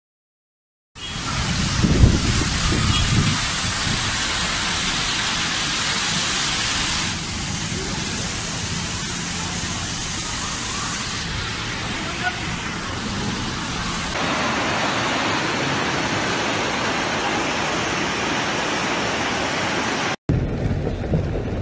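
Floodwater rushes loudly along a street.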